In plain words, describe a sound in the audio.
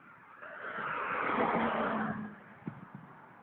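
A car drives past close by, its tyres swelling and fading on the road.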